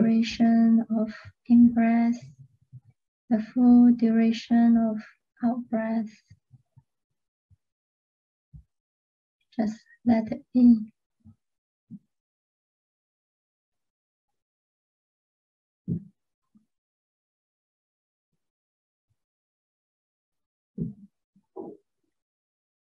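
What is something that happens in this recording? A young woman sings softly close to a microphone, in short phrases with long pauses.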